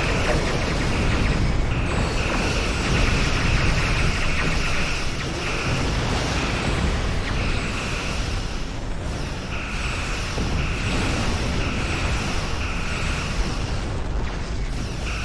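Laser weapons zap and fire repeatedly in a space battle.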